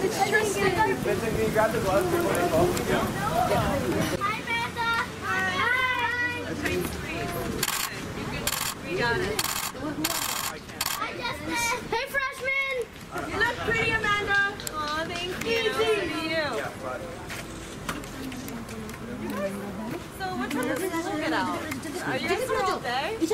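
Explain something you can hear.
Several young people talk and call out nearby, outdoors.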